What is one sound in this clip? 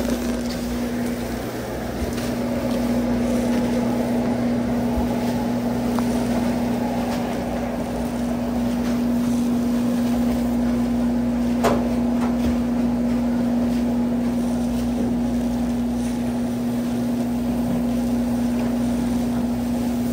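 A refrigeration unit hums steadily.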